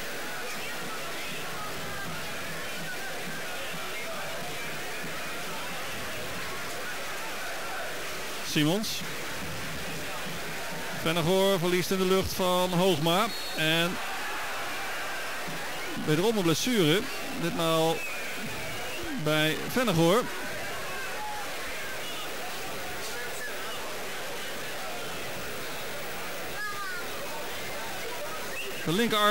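A stadium crowd murmurs and cheers in the distance.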